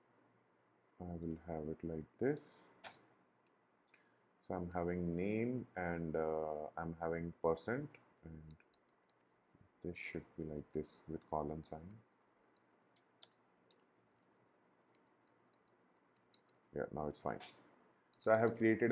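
A man talks calmly and closely into a microphone, pausing between phrases.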